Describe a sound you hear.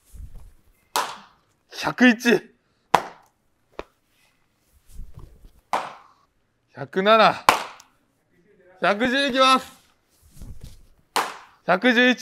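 A baseball smacks into a net with a sharp thud.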